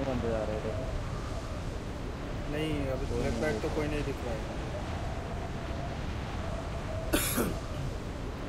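Wind rushes steadily past a skydiver in free fall.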